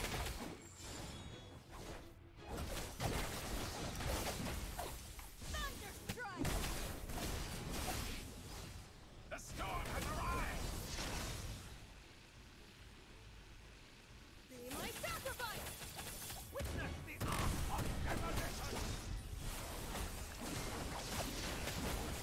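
Game battle sounds clash and burst with magic effects.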